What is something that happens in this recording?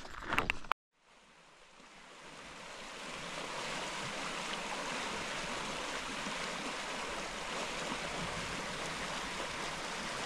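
Water in a river rushes and gurgles steadily.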